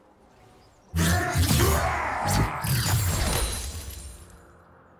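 Game spell effects burst and crackle loudly during a fight.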